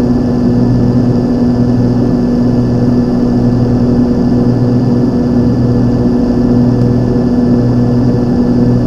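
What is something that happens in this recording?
Air rushes past the aircraft.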